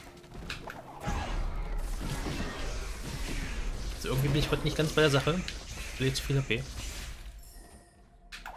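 Game sound effects of magical blasts crackle and whoosh during a fight.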